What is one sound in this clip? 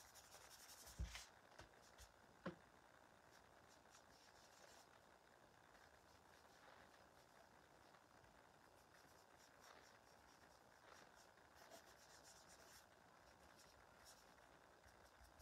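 A brush scratches and dabs lightly on a rough surface.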